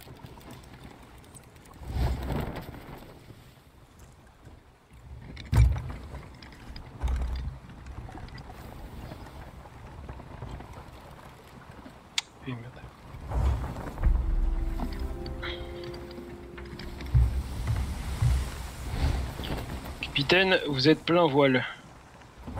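Waves crash and wash against a wooden ship.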